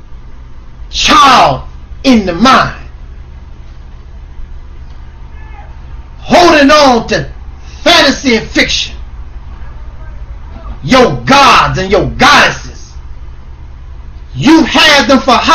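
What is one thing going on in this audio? A man shouts loudly in bursts, close to a microphone, with pauses between.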